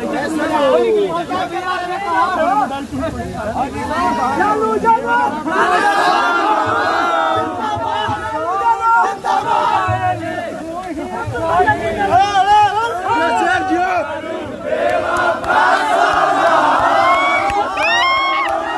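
A crowd of young men shouts and cheers close by.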